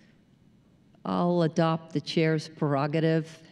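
A woman speaks calmly into a microphone over a loudspeaker in a large hall.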